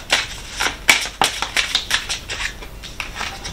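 Playing cards shuffle with quick sharp flicks.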